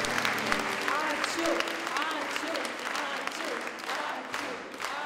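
A crowd of men and women cheers.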